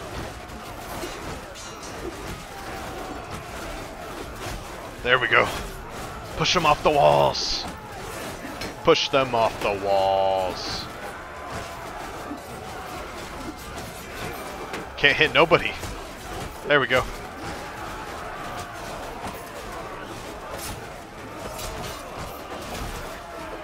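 Weapons clash and clang against shields.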